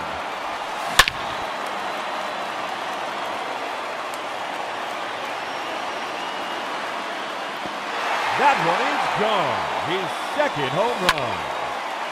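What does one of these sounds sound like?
A wooden bat sharply cracks against a baseball.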